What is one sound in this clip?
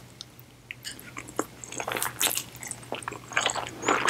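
A young woman slurps noodles loudly close to a microphone.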